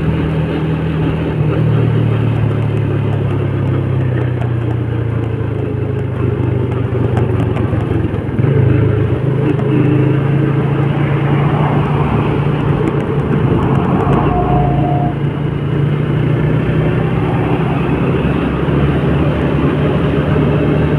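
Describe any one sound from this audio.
Traffic passes on the road.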